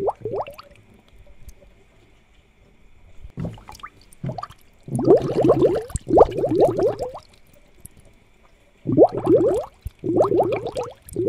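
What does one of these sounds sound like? Air bubbles gurgle and burble in water.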